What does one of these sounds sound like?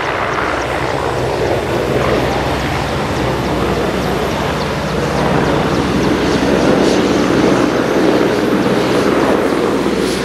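A helicopter hovers nearby, its rotor beating and its engine roaring steadily.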